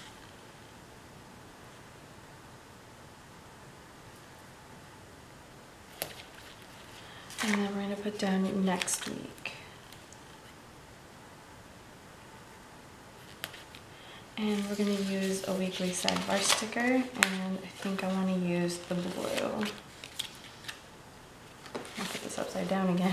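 Sticker sheets rustle and crinkle softly as they are handled.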